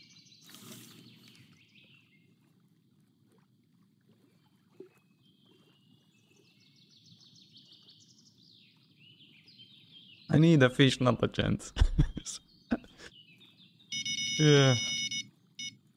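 Water laps gently against the shore.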